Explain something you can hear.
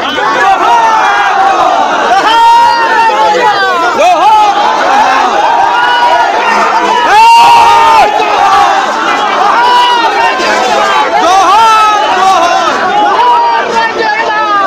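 A large crowd of men shouts and chants loudly outdoors.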